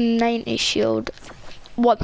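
A game character gulps down a drink.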